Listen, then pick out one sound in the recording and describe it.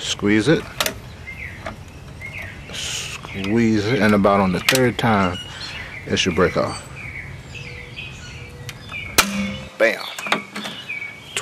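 Metal pliers click and scrape against a metal part.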